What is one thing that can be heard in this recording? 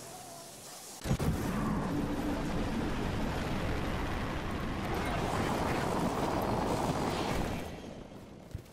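Air rushes loudly past during a high jump and glide.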